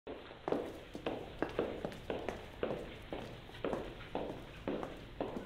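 High heels tap steadily with each step.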